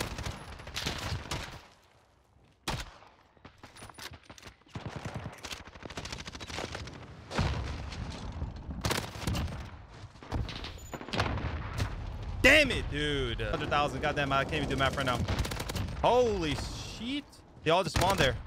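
Submachine gun fire bursts in a video game.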